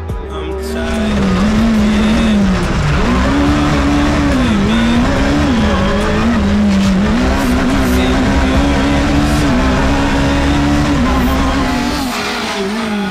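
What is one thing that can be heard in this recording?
A rally car engine roars loudly from inside the cabin, revving up and dropping as gears change.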